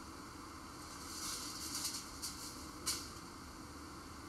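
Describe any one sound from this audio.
Dry leaves rustle underfoot.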